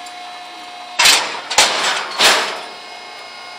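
A metal gate clangs loudly shut.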